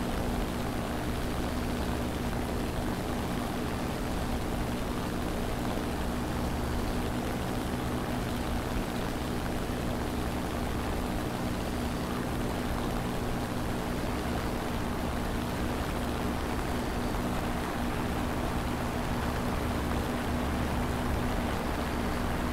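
Twin propeller engines drone steadily and loudly.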